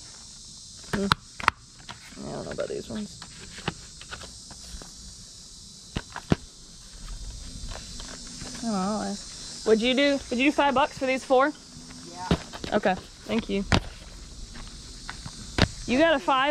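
Plastic game cases click and clatter as hands shuffle them.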